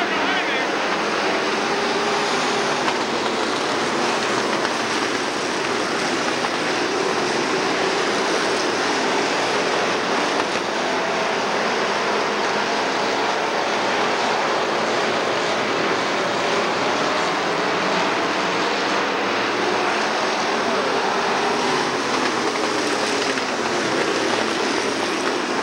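Race car engines roar loudly as cars speed past.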